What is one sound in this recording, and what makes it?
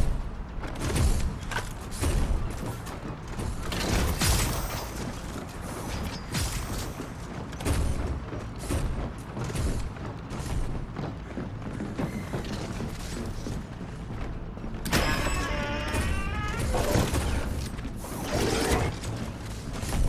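Heavy footsteps run on a hard floor.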